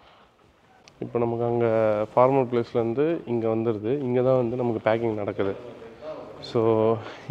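A young man speaks close up with animation.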